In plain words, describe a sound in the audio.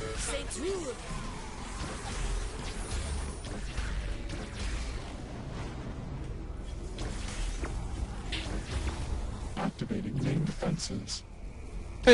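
Energy rifle shots fire in a video game.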